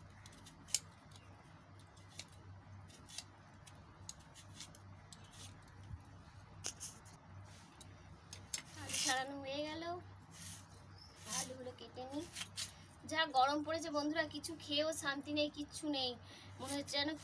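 A peeler scrapes the skin off a potato in short strokes.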